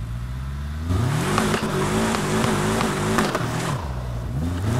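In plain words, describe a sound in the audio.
Water splashes and sprays under a car's tyres.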